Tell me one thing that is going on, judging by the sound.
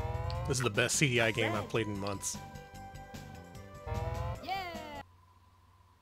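Cheerful electronic game music plays with bright beeping tones.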